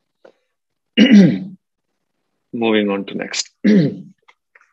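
A man coughs into his hand.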